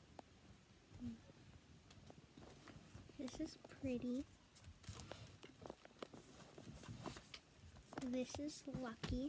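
Soft toys thump onto a bed.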